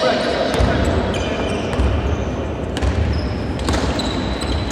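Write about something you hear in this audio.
A basketball thuds as it bounces on the court.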